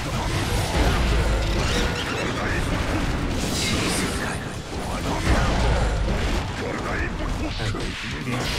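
Heavy punches and hits land with loud impacts.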